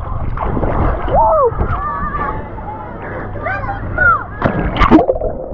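A boy gasps and calls out in the water.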